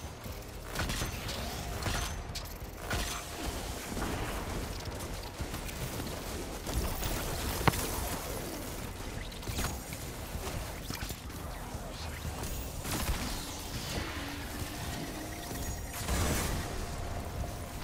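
Guns fire in rapid bursts with sharp blasts.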